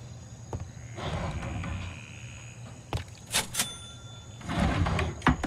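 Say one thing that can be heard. A wooden drawer slides open with a scrape.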